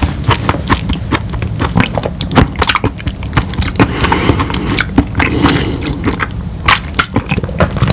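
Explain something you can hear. A man murmurs softly and close up.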